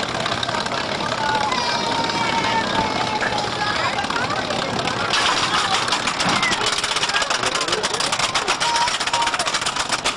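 A small roller coaster train rattles along its track.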